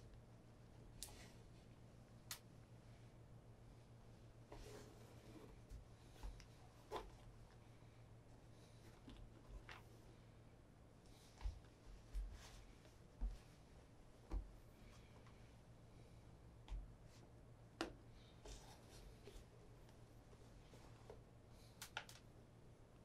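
Soft knocks and taps sound as a shoe is handled on a wooden table.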